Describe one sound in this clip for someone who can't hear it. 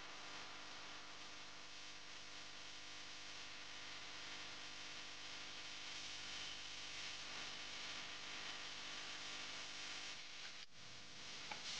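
Oil sizzles and crackles steadily in a hot pan.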